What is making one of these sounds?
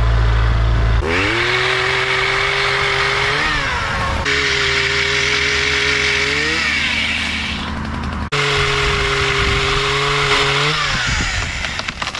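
A pole saw engine whines and revs as it cuts branches.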